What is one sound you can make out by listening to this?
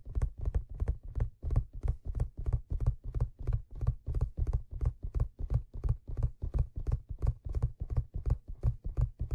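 Fingers tap and scratch rapidly on a leather surface close to a microphone.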